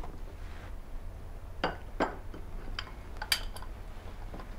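Small objects knock and clink on a counter.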